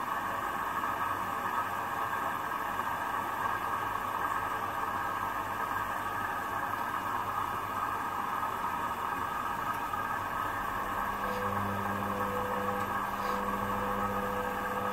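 A washing machine drum turns with a steady hum.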